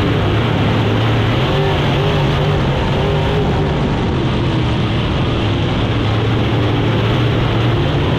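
A race car engine roars loudly and steadily up close.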